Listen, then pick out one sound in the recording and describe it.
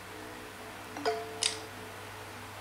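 A bright electronic chime rings out from a game.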